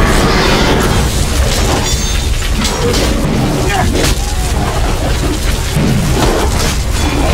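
Swords clash and strike armour in a battle.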